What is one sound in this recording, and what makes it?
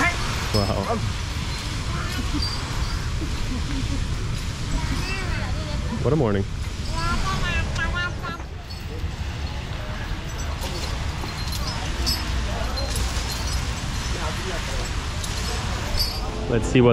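Palm fronds drag and rustle along a paved road.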